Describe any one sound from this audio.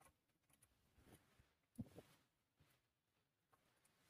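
A screwdriver rattles as a screw is turned in a metal hub.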